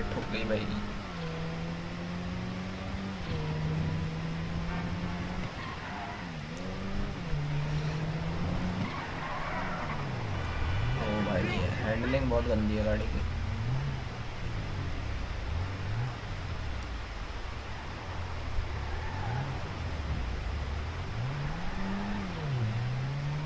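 A car engine revs up and down as it speeds and slows.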